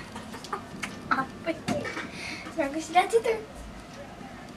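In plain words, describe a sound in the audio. A small boy speaks and babbles in short bursts.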